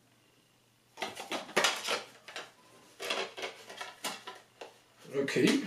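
Plastic wrap crinkles as a CD case is unwrapped.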